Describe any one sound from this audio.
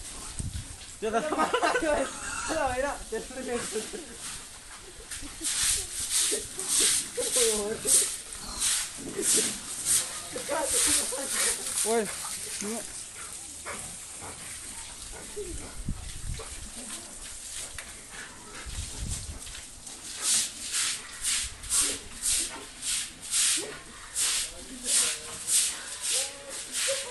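Piglets squeal loudly and repeatedly.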